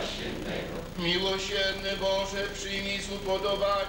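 An elderly man chants in a sustained singing voice.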